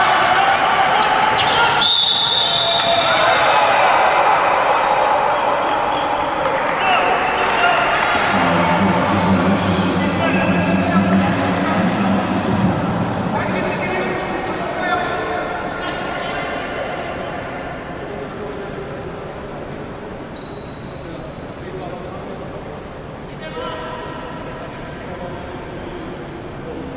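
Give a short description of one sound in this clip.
A crowd cheers and chatters loudly in a large echoing hall, then quiets down.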